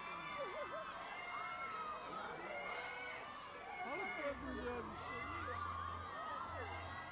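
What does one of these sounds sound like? A crowd of young women shrieks and calls out excitedly outdoors.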